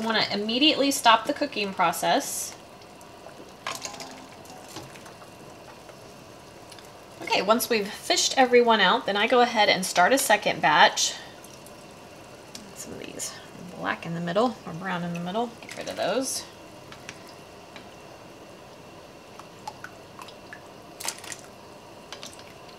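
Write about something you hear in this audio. Water bubbles in a pot on a stove.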